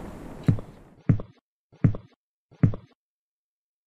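Loud knocks bang on a wooden door.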